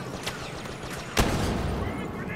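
Blaster shots hit a metal droid with sparking zaps.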